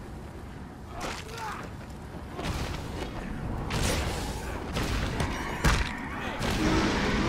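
A sword slashes and strikes creatures.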